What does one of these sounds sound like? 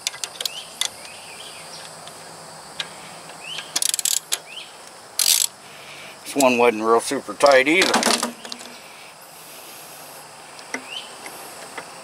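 A ratchet wrench clicks as it turns.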